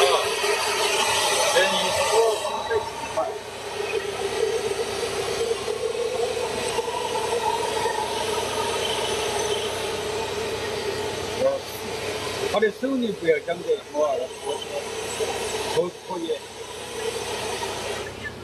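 A hair dryer blows with a steady whirring hum close by.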